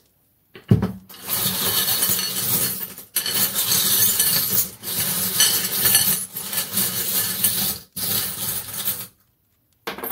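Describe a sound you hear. Small stones rattle and clatter as a hand stirs them in a bowl.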